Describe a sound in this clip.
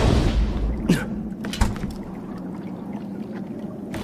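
A metal chest lid creaks open.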